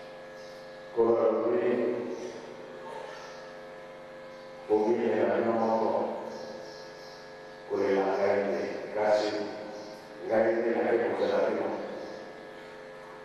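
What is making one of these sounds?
A middle-aged man speaks loudly into a microphone in short bursts with pauses, heard through a loudspeaker.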